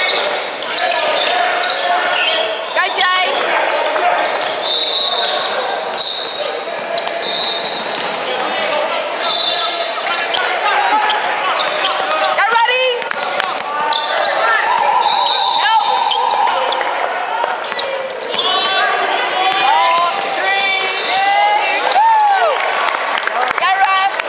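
Young players shout and call out across the court.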